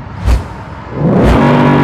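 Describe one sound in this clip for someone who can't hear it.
A car engine revs up loudly.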